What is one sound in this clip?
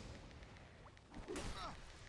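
Blades strike during a fight.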